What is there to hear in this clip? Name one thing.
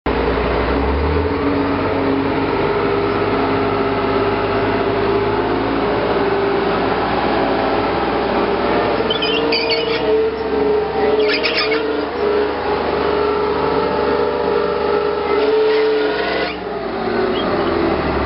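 Tank tracks clank and squeak over dirt as a tank rolls past.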